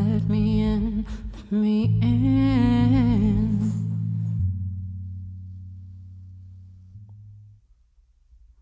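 A band's final chord rings out and slowly fades.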